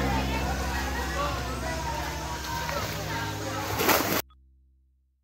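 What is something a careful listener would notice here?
Water laps and splashes gently in a pool.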